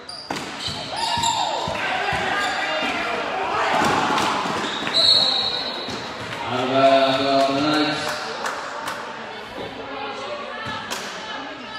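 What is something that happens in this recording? Spectators talk and shout in an echoing gym.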